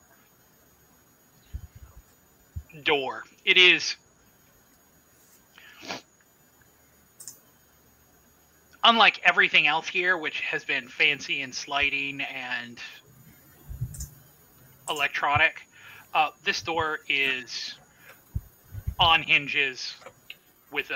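A woman talks over an online call.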